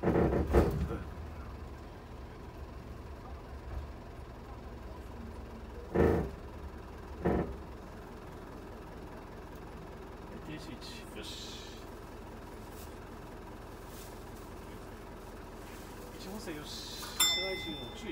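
A bus engine hums low and steady from inside the cab.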